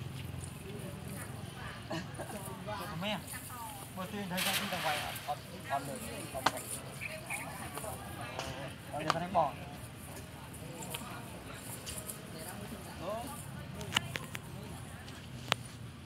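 Several people talk nearby outdoors.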